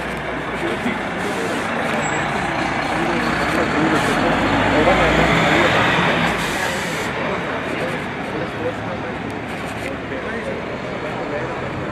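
A lorry engine rumbles close by as it passes slowly.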